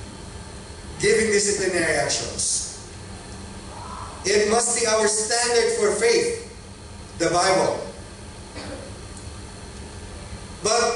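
A middle-aged man speaks calmly into a microphone, with pauses, heard through a loudspeaker in a room with some echo.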